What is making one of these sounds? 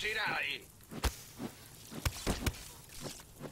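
A weapon fires with sharp, loud blasts.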